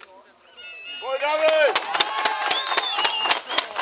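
A crowd of spectators cheers and shouts loudly.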